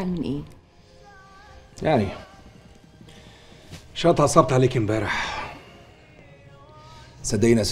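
A man speaks in a low, serious voice close by.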